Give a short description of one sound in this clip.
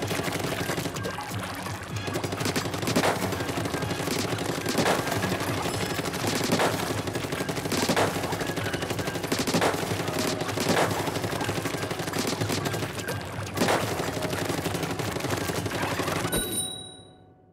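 Game music plays with a steady beat.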